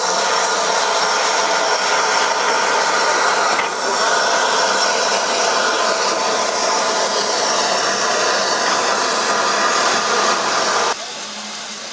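A steam locomotive hisses and roars loudly close by.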